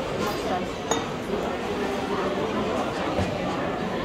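Several people chat and murmur nearby.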